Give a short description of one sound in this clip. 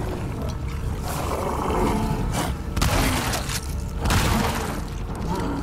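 Loud gunshots boom in quick succession.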